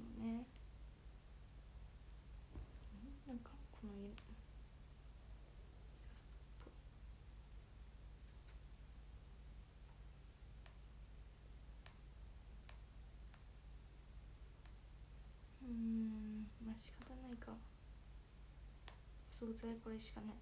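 A young woman speaks softly, close by.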